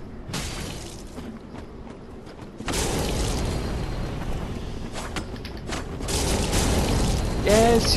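Blades clash and slash in a sword fight.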